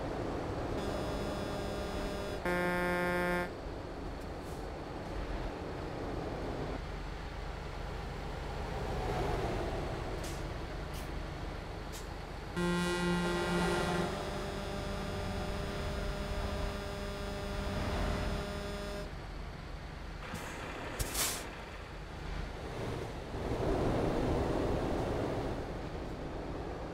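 A truck engine rumbles steadily as it drives along a highway.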